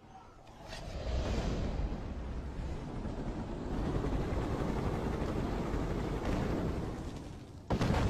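A deep rumble roars.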